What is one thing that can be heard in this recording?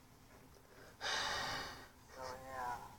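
A young man laughs softly close by.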